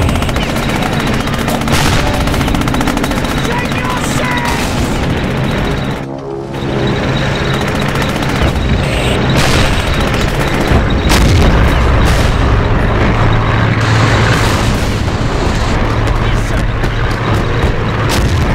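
Tank engines rumble steadily.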